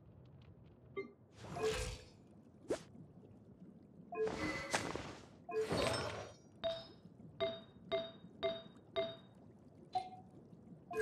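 Short soft chimes ring as menu options are selected.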